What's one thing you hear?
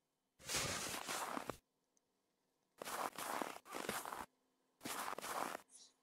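A shovel scrapes and crunches through snow in short bursts.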